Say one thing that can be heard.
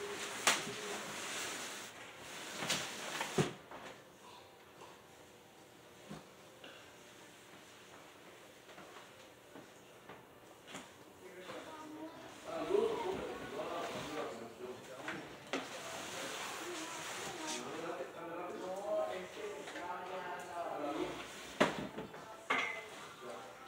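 Objects knock and clatter on a hard floor nearby.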